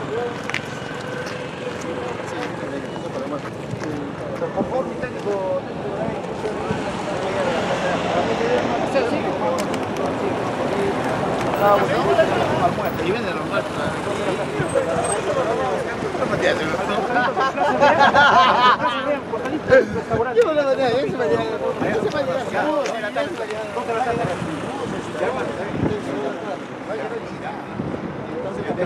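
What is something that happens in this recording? Several men talk at once close by, outdoors.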